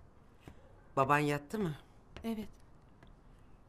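A middle-aged woman speaks briefly.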